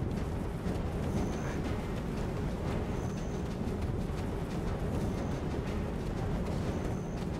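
Footsteps thud on dirt.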